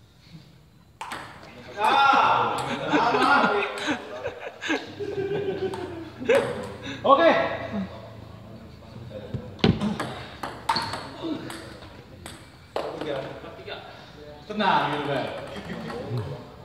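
A ping-pong ball clicks sharply on paddles and the table.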